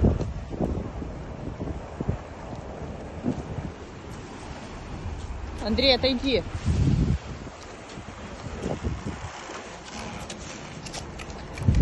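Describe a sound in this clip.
Ice cracks and crunches against a boat's hull.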